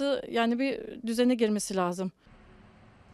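A woman speaks into a microphone close by, with animation.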